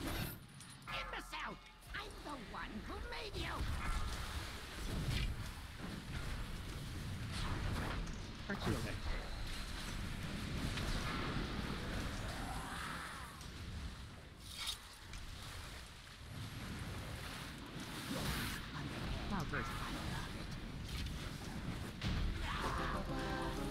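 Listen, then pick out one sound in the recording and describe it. Fantasy battle sound effects clash and whoosh.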